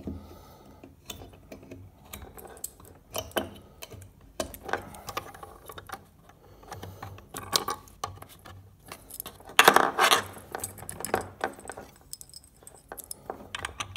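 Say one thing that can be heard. Hands shift a small box on a hard surface, with light clicks and rattles.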